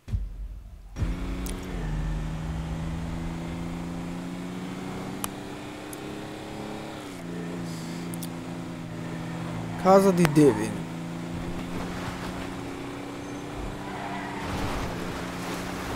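A truck engine hums steadily as it drives along a road.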